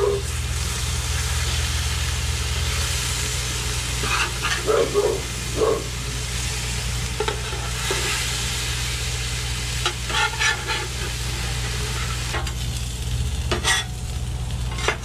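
Food sizzles steadily on a hot griddle.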